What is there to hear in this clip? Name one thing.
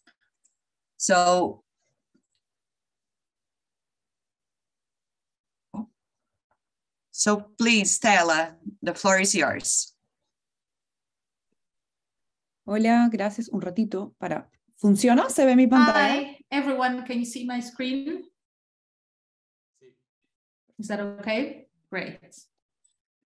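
A woman speaks calmly through an online call, with pauses.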